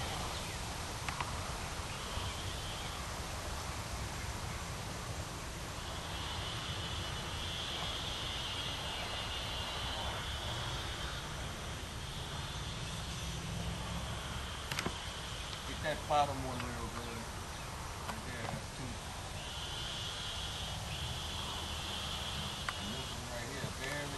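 A man talks calmly outdoors.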